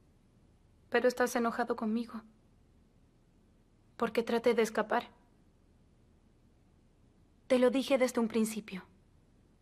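A young woman speaks with distress close by.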